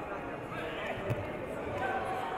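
A wrestler lands with a dull thud on a mat.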